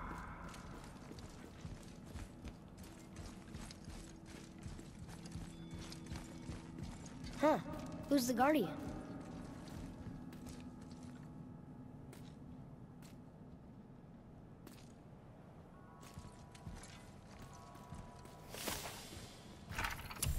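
Heavy footsteps thud on stone floor.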